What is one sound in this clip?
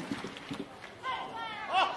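A man speaks into a microphone, heard through loudspeakers.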